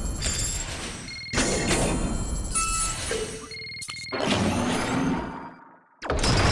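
Video game sound effects of lasers and explosions play.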